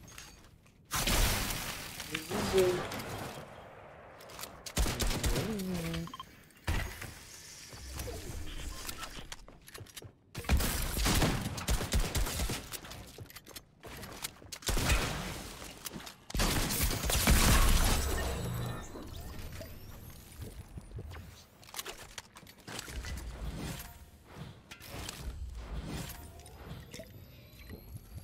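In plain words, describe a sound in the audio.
A teenage boy talks with animation into a headset microphone.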